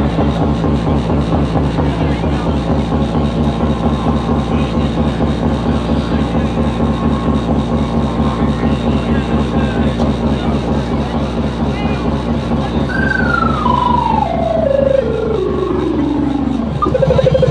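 Loud techno music with a pounding beat plays from loudspeakers outdoors.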